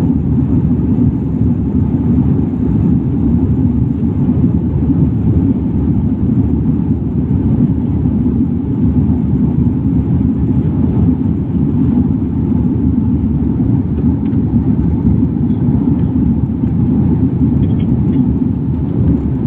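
Jet engines roar steadily inside an aircraft cabin.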